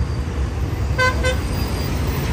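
A vehicle horn honks briefly.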